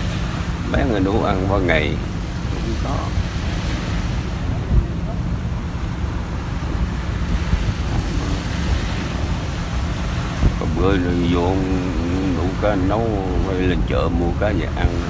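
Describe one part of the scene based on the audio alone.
An elderly man speaks calmly, close by.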